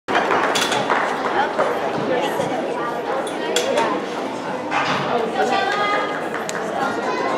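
Hands slap against a wooden bar.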